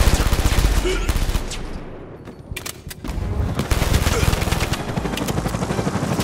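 Pistol shots crack in rapid bursts.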